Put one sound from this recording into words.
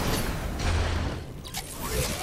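An energy beam fires with a buzzing blast.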